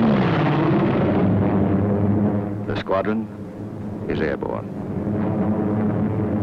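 Several propeller planes drone together in steady flight.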